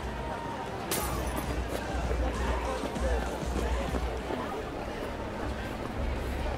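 A crowd murmurs nearby on a busy street.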